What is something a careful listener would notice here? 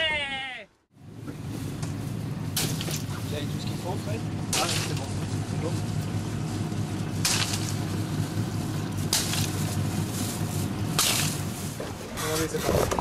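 A boat engine idles with a low steady hum.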